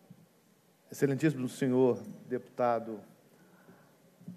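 A middle-aged man speaks loudly and with emphasis into a microphone in an echoing hall.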